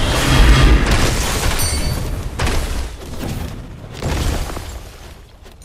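Magic blasts and hits crackle and boom in a video game.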